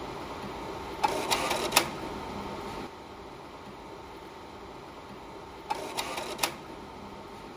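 A slide projector clacks as it changes slides.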